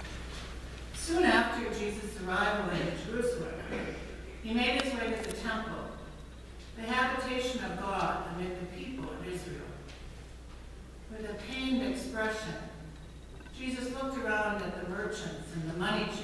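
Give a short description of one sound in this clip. An older woman reads out calmly through a microphone in an echoing hall.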